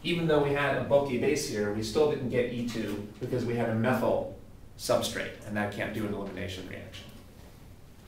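A man speaks clearly and steadily, close by, as if lecturing.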